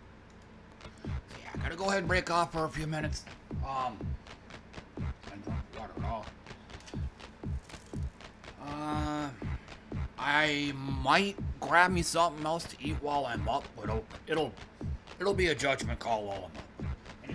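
A man shouts and talks with animation.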